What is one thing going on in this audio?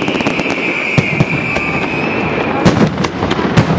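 Fireworks burst with loud bangs.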